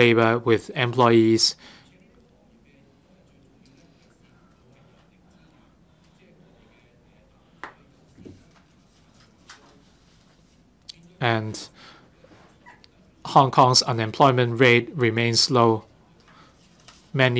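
A man speaks calmly into a microphone, with long pauses between phrases.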